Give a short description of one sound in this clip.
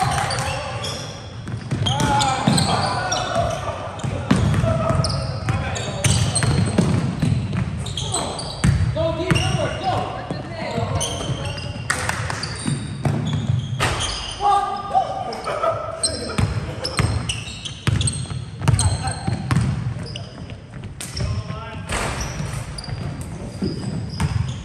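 Young men call out to each other across a large echoing gym.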